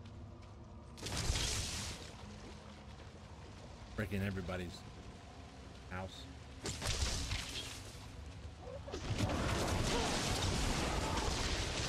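Spells and combat effects crash and whoosh.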